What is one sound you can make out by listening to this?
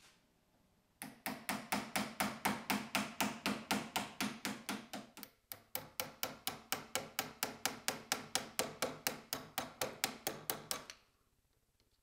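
A tool scrapes wood in a fast, steady rhythm.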